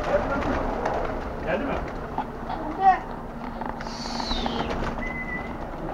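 Pigeons flap their wings as they take off.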